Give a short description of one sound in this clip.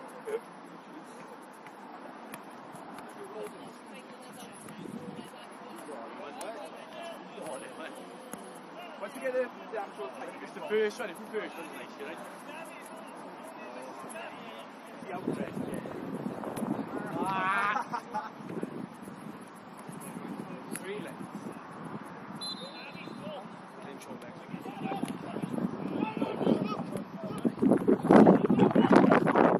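Distant male players shout to each other across an open field outdoors.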